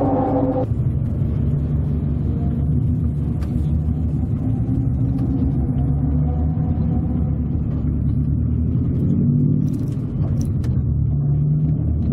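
Tyres rumble on pavement.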